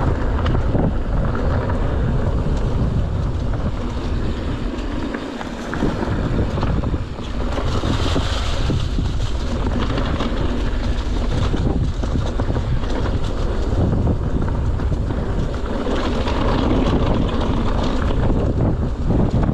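Bike tyres crunch and rattle over dry leaves and dirt.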